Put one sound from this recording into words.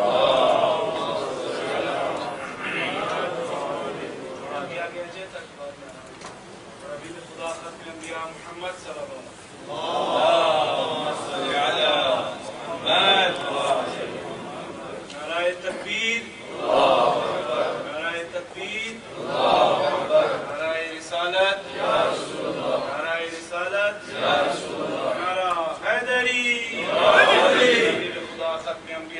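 A man recites with feeling into a microphone, heard through a loudspeaker in an echoing room.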